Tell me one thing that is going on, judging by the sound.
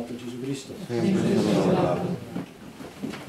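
Several voices sing a short response together.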